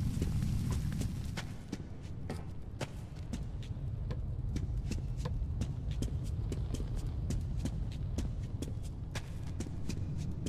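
Footsteps crunch softly on a gritty floor.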